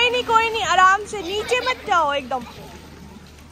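A young girl sings and squeals in a high voice close by.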